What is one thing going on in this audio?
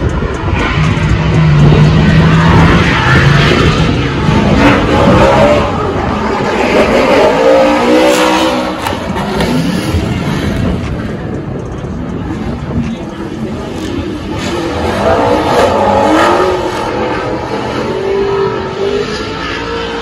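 Drift car engines roar and rev loudly outdoors.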